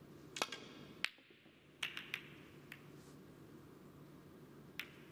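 Snooker balls click against each other and knock into the cushions.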